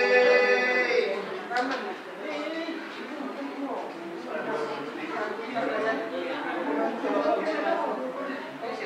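A crowd of women sing together.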